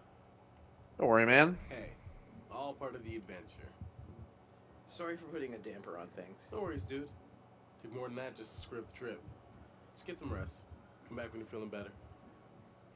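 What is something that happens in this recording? Two young men talk calmly in turn, close by.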